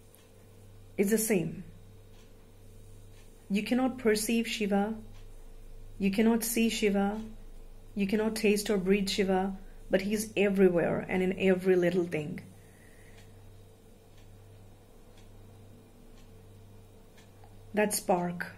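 A young woman speaks calmly and close up, in short phrases with pauses.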